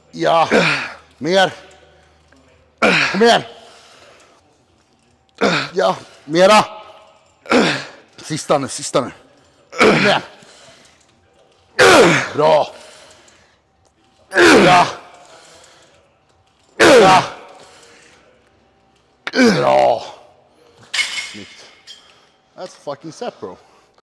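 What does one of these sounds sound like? A man talks with effort, close by and miked.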